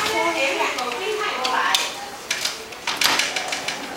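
A door rattles as small hands push on it.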